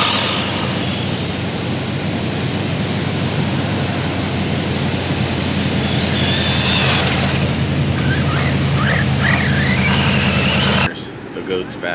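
A small electric motor whines as a remote control car races over sand.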